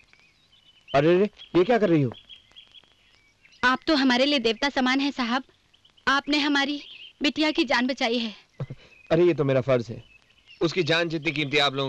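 A man speaks with emotion nearby.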